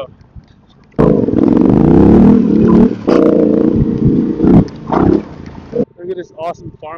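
A motorcycle engine rumbles loudly.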